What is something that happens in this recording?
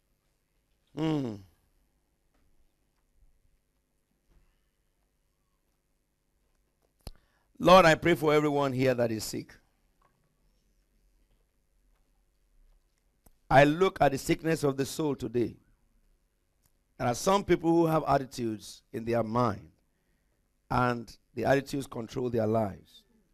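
A middle-aged man speaks with animation through a microphone, in short bursts with pauses.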